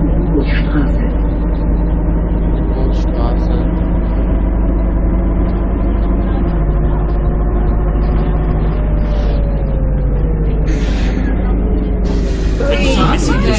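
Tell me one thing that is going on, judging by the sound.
A bus engine hums steadily as the bus drives along a road.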